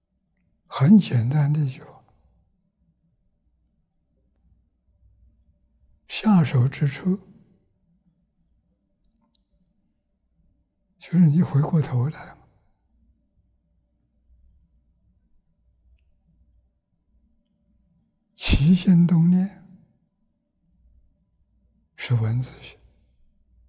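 An elderly man speaks slowly and calmly into a close microphone, in short phrases with long pauses.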